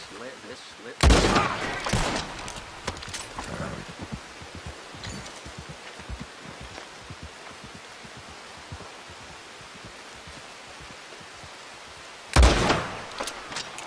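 A rifle fires two loud shots that echo away.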